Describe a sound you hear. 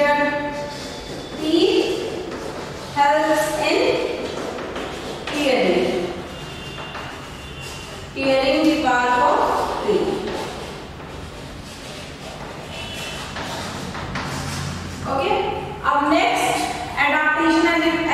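A woman speaks steadily and clearly, close by, in a slightly echoing room.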